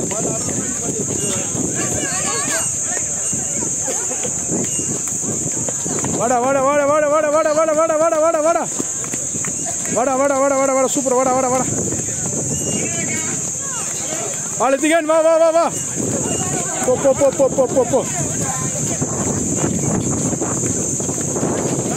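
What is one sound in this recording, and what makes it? A crowd of onlookers chatters outdoors.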